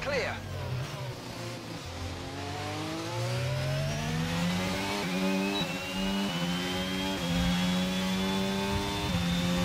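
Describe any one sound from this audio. A racing car engine screams as it accelerates, rising in pitch and dropping briefly with each quick gear change.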